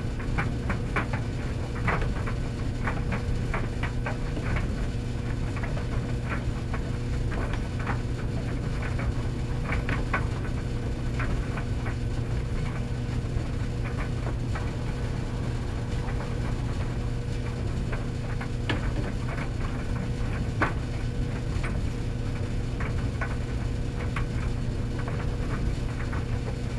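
Clothes tumble and knock inside a dryer drum.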